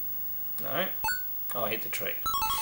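A video game plays short electronic beeping tones.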